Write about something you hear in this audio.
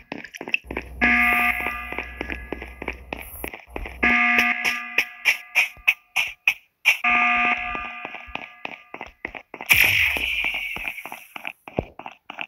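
An alarm blares in repeated long bursts.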